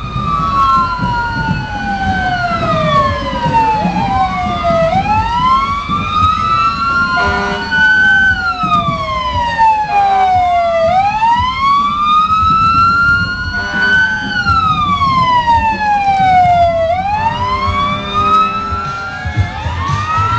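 A siren wails, rising and falling over and over, close by.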